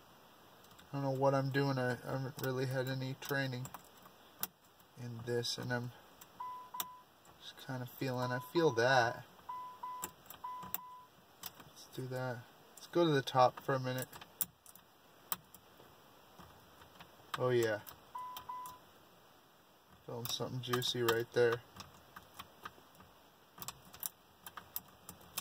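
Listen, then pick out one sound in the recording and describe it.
Small metal clicks and taps come from a key being worked in an ignition lock.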